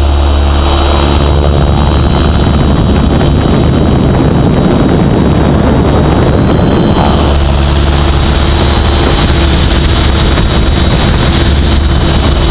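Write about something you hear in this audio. A model helicopter's motor whines loudly and steadily, close by.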